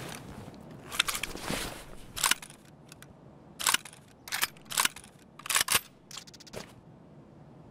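Short clicks and rustles sound as gear is moved about.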